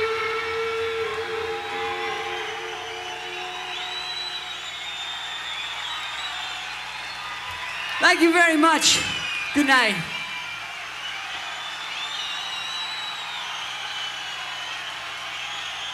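An electric guitar plays loudly through amplifiers.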